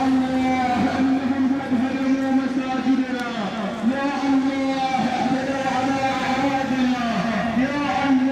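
A crowd of marchers chants slogans loudly in unison outdoors.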